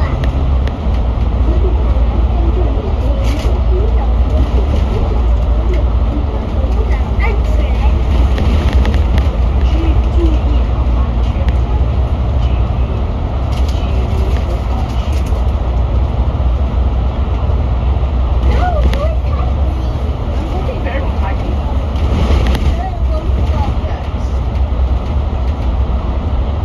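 A vehicle's engine rumbles steadily as it drives through an echoing tunnel.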